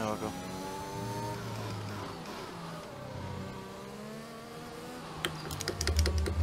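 A racing car engine whines, dropping in pitch as the car slows and shifts down through the gears.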